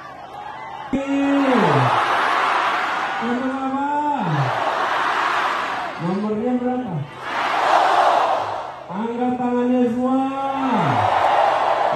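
A man shouts out chants through loudspeakers, each call drawn out.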